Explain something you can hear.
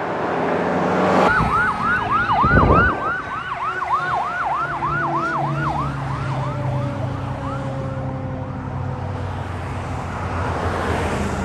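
Traffic rushes past on a busy road.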